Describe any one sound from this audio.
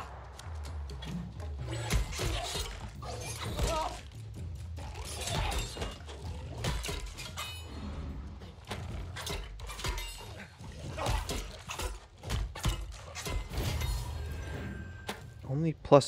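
Blows and hits thud in quick bursts.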